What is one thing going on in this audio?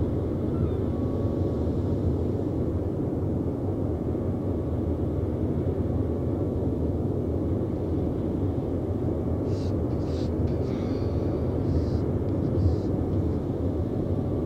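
A ship's engine rumbles low and steadily.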